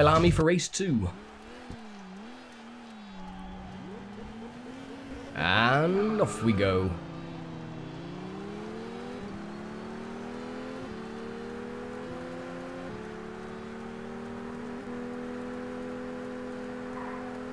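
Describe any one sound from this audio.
A car engine idles, then revs up and climbs through the gears.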